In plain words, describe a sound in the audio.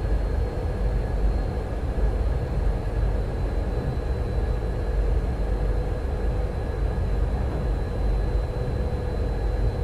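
A train engine hums steadily.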